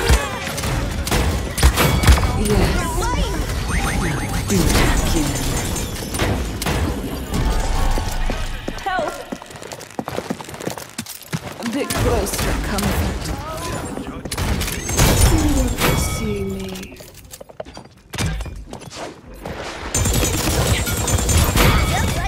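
A game weapon fires rapid energy shots.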